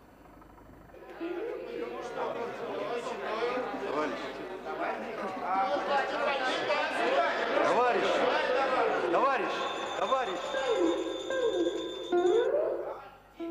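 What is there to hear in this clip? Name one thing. A crowd of men and women sing and shout loudly.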